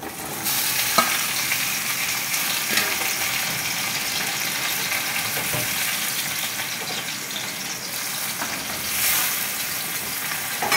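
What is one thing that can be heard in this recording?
A metal spatula scrapes and clinks against a metal wok.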